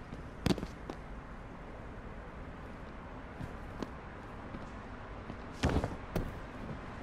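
Heavy bodies thud against a floor and barrier.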